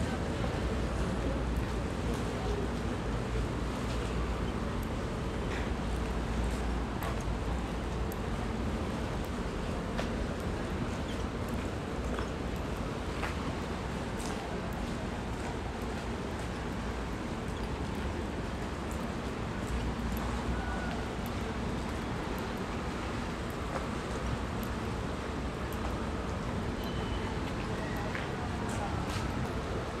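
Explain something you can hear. A river flows and laps steadily nearby outdoors.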